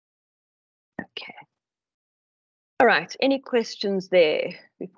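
An older woman speaks calmly through an online call.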